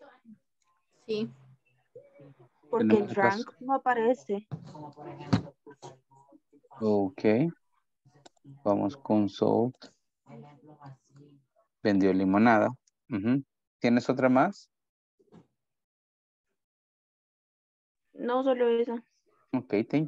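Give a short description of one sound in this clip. A woman speaks calmly over an online call, in short phrases with pauses.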